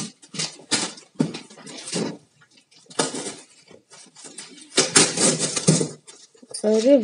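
Paper tears and crinkles up close.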